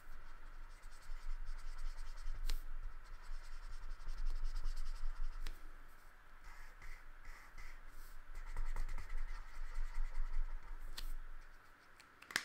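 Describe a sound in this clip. A felt marker squeaks and scratches across paper.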